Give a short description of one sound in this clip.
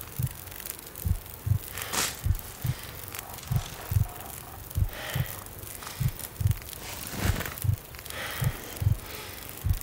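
A campfire crackles close by.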